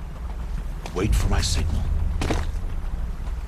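A man lands with a heavy thud on rock.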